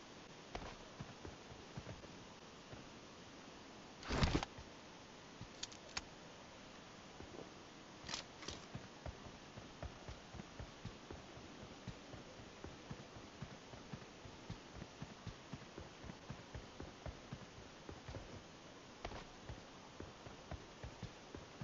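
Footsteps thud quickly on dry ground.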